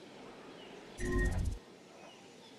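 A short electronic alert chimes.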